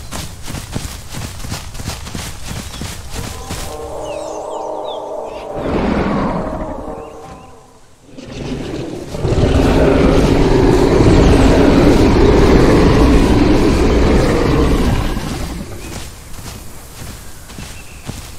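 A large creature's heavy footsteps thud steadily.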